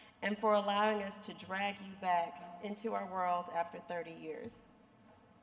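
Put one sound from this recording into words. A woman speaks calmly into a microphone over a loudspeaker in a large echoing hall.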